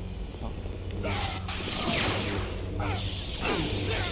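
A lightsaber swings and clashes in a fight.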